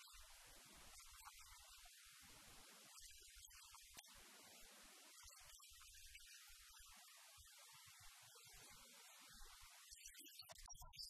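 An elderly man reads aloud in a quiet voice.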